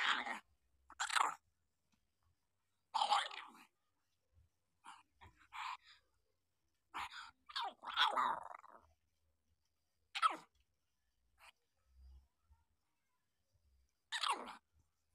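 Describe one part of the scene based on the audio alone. Newborn puppies whimper and squeal in short high cries.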